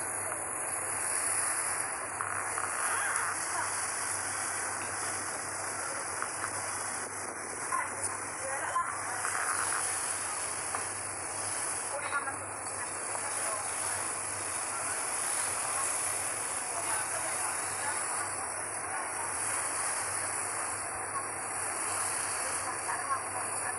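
Water laps and splashes against a moving boat.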